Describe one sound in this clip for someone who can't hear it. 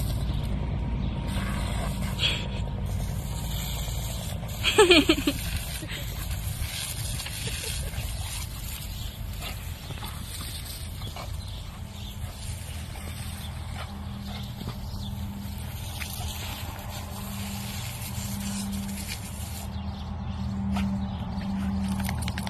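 Water sprays steadily from a garden hose.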